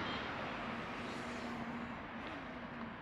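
A motor scooter hums past close by.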